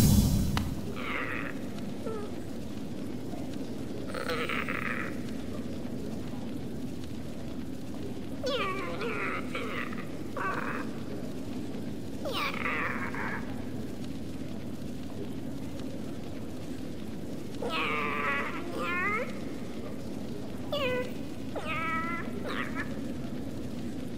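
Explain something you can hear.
A small flying creature chirps in short, squeaky bursts.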